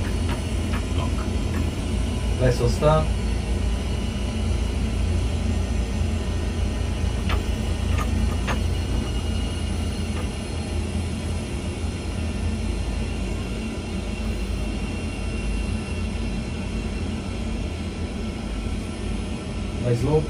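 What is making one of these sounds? A steady low engine rumble drones in a cockpit.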